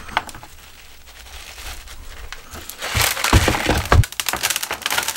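Soil crumbles and rustles as hands pull a plant from a pot.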